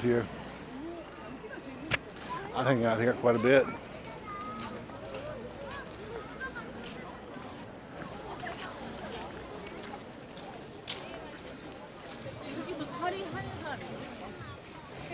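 A crowd chatters nearby outdoors.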